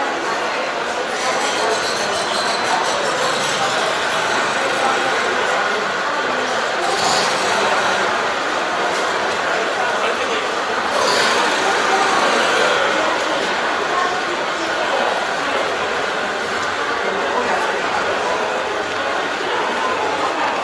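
A crowd murmurs and chatters steadily in a large, echoing hall.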